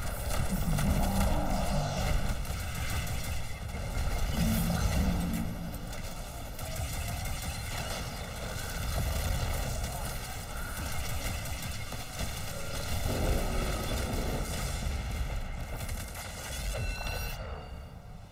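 Gunfire and explosions boom and crackle in quick bursts.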